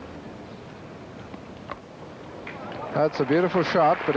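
A bat strikes a cricket ball with a sharp knock.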